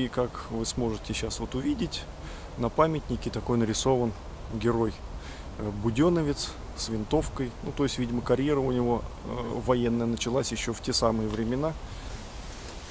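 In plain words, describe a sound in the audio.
A young man talks calmly, close to the microphone.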